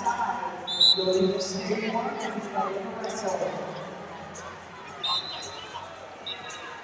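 A crowd of men and women talks and shouts in a large echoing hall.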